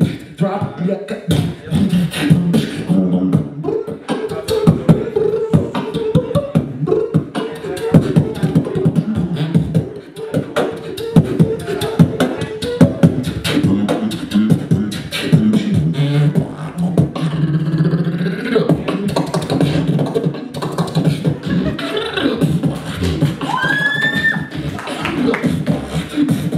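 Young men beatbox rapidly into a microphone, heard through loudspeakers.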